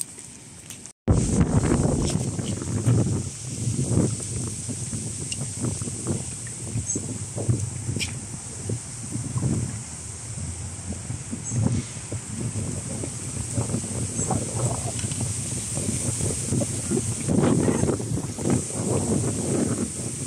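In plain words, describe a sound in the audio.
Wind gusts buffet outdoors.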